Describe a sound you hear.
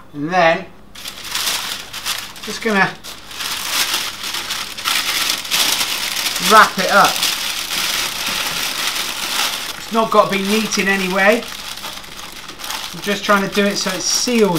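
Baking paper crinkles and rustles as it is folded.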